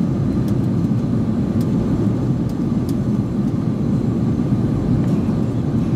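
Jet engines roar steadily in an airliner cabin in flight.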